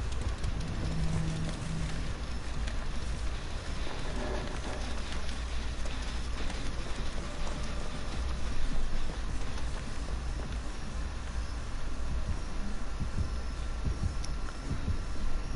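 Footsteps run quickly through grass and undergrowth.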